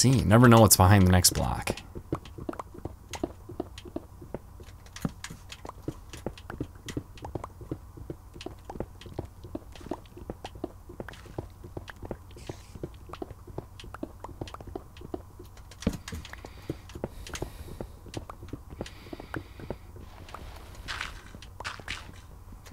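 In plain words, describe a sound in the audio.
Stone blocks crunch and crumble in a quick, steady run of digging blows.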